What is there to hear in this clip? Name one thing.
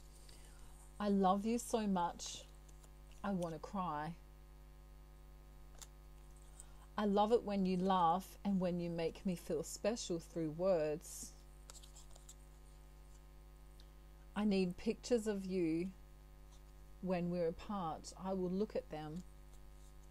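A woman speaks calmly and softly into a close microphone, with pauses.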